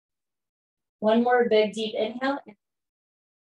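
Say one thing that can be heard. A woman speaks calmly, close to the microphone, as if over an online call.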